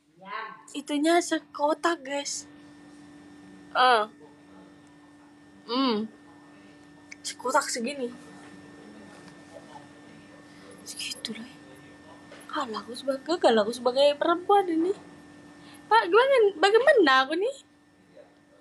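A young woman talks close to a phone microphone, with animation and now and then laughing.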